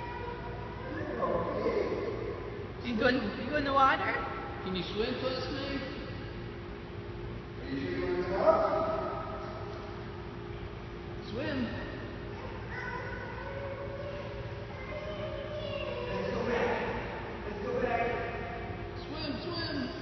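A young person calls out in an echoing room.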